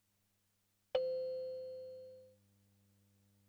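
A game console plays a bright startup chime that rings briefly and fades.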